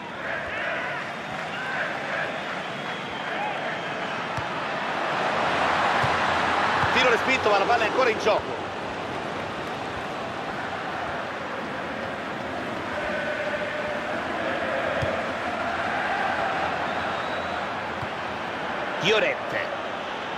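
A large stadium crowd roars steadily, swelling louder for a few seconds.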